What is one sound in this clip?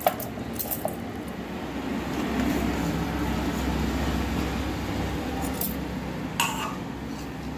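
Chopped vegetables drop with soft thuds into a metal jar.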